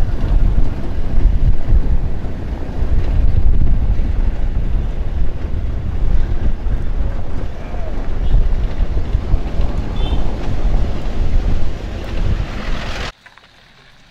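A vehicle bumps and rattles along a rough dirt road.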